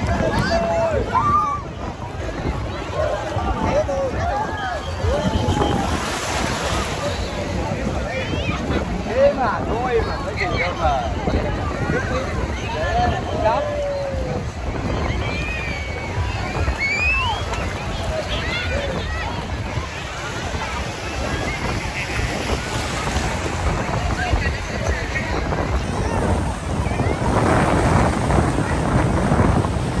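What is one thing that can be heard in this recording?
Many people chatter and shout in the distance.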